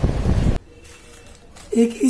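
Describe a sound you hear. Small metal screws rattle in a plastic bag.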